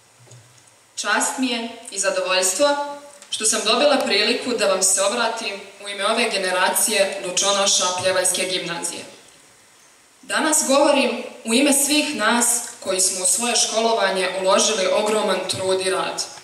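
A young woman speaks calmly into a microphone over loudspeakers in a large hall.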